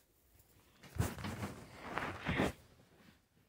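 Hands rustle softly against a fabric toy.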